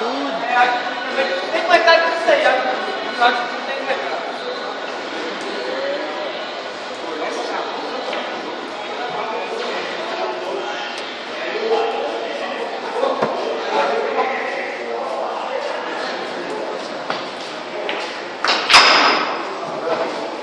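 Pool balls click sharply against each other on a table.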